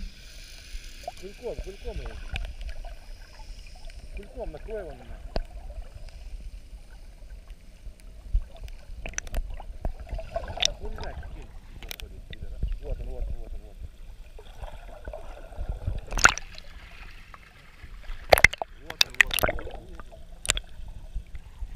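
Water gurgles and bubbles, heard underwater.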